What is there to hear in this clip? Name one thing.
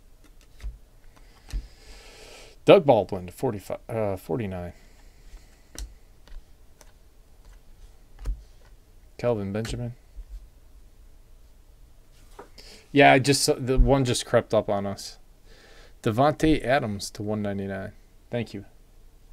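Trading cards rustle and slide as hands shuffle them.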